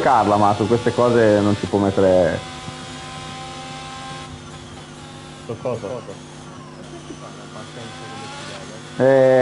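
A racing car engine screams loudly, its pitch rising and dropping through gear changes.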